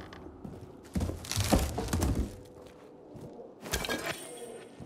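Hands rummage through cloth in a wicker basket.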